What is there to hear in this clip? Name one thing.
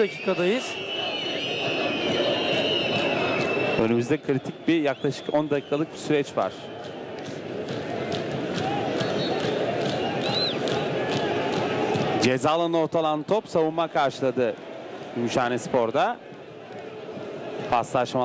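A large crowd chants and roars outdoors.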